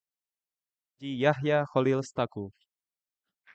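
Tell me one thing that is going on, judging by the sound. A young man reads out through a microphone.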